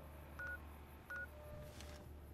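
An electronic device beeps twice softly.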